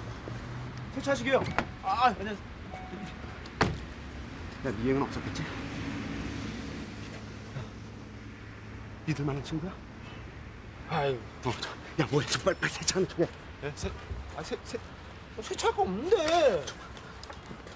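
Men talk with each other nearby, in short exchanges.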